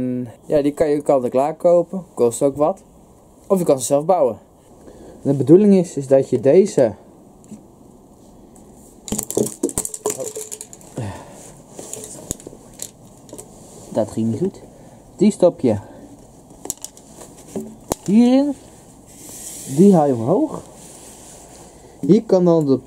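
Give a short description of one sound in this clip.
A young man talks calmly, close up.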